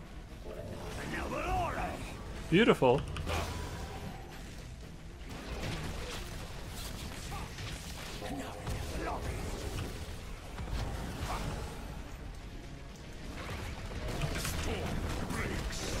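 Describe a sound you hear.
Game sound effects zap and crackle.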